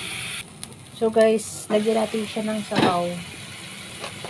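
A metal lid clatters and rings on a pot.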